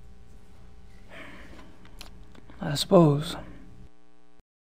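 A younger man speaks in a relaxed voice, close by.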